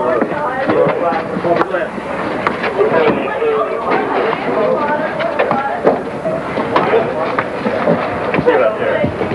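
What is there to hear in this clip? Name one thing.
Bodies thud and scuffle against a car.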